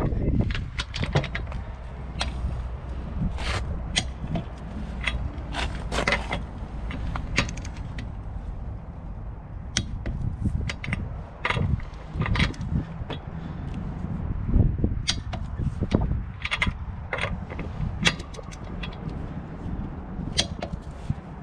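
A ratchet wrench clicks rapidly as lug nuts are turned.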